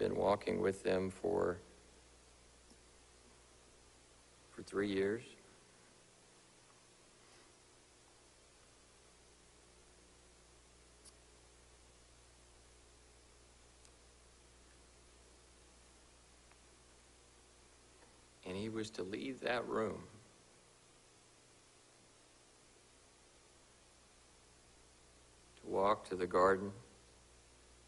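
A man speaks slowly and calmly into a microphone, with long pauses, in an echoing room.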